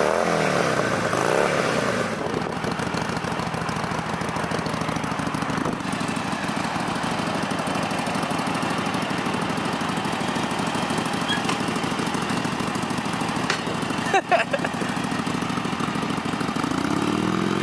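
A motorcycle engine rumbles steadily at idle close by.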